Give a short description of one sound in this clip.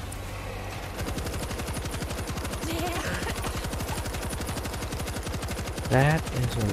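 A heavy machine gun fires rapidly.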